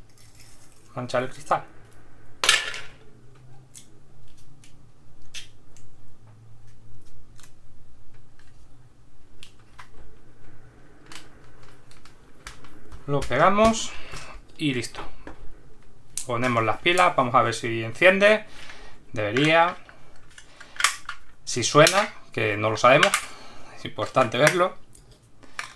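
Small plastic parts click and tap together as they are handled.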